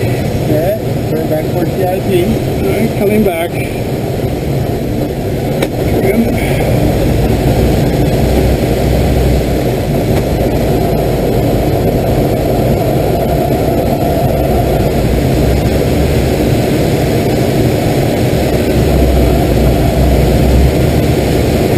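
Wind rushes loudly and steadily past a glider's canopy.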